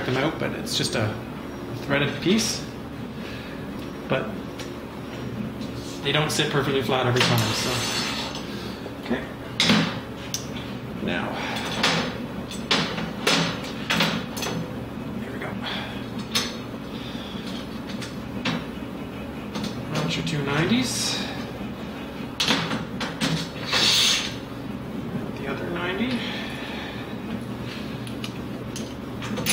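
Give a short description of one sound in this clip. Metal tools clink and clatter on a hard surface.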